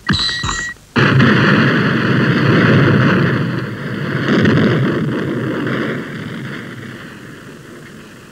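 A cartoon man crashes heavily to the ground with a long rumbling noise that slowly fades.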